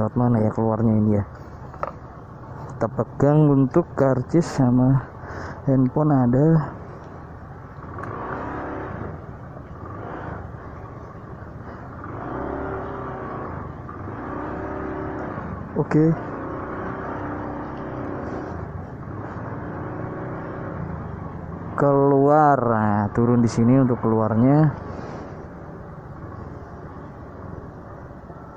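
A motorcycle engine runs with a low, steady hum.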